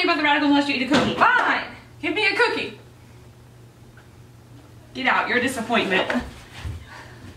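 Two young women talk with animation nearby.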